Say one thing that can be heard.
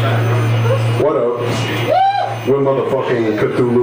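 A man screams vocals into a microphone.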